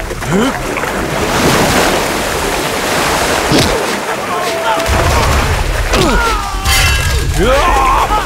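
Feet splash through deep water.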